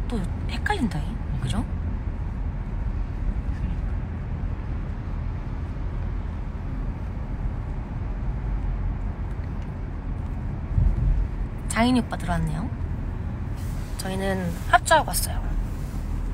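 A young woman speaks softly in short bursts close to the microphone.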